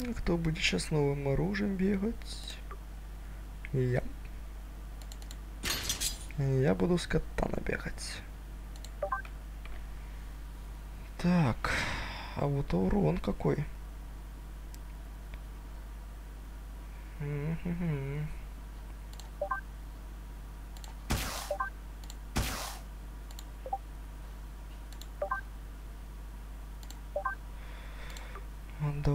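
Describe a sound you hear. Short soft clicks sound as menu items are selected.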